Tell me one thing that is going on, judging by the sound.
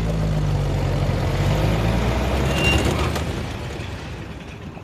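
A car engine rumbles as a car pulls up.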